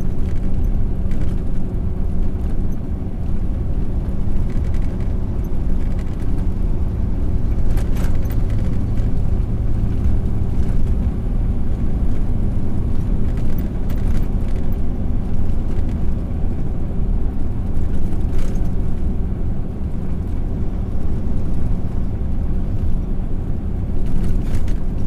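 Tyres roll along the road.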